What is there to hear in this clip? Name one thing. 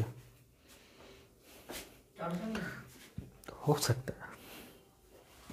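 A man speaks calmly in a close, slightly echoing room.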